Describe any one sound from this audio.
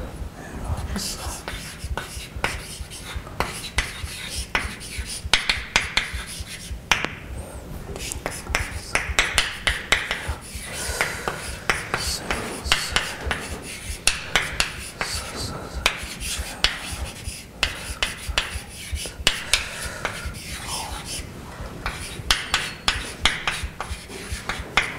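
A man lectures steadily in a room with some echo.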